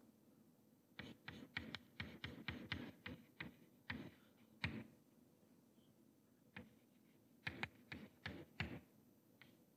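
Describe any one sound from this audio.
Chalk taps and scrapes on a blackboard.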